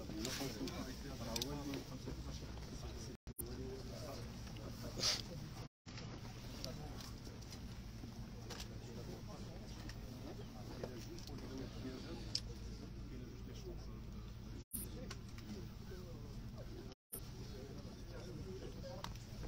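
Several men talk calmly nearby in a murmuring crowd.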